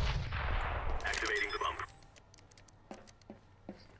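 Keys beep as a bomb is armed.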